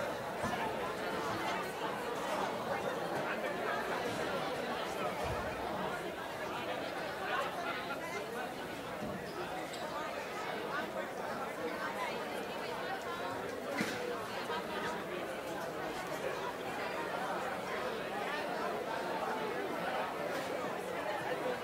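A crowd of children chatters in a large hall.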